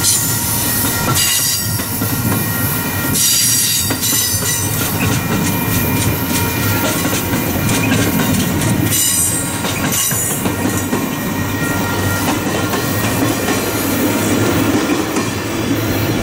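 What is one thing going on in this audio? A passenger train rumbles past close by, its wheels clattering over the rail joints.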